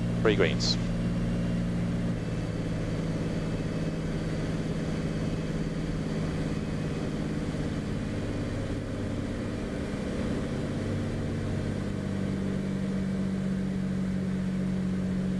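A small plane's propeller engine drones steadily, heard from inside the cockpit.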